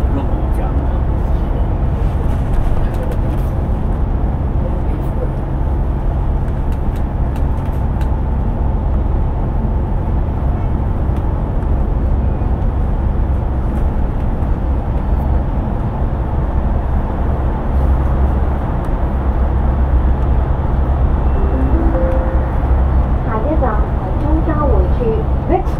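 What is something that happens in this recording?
A bus engine rumbles steadily, heard from inside the bus.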